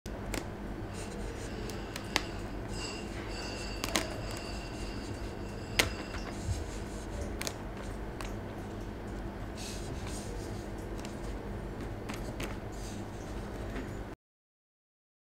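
A plastic cup scrapes and knocks softly on a wooden surface as it is turned.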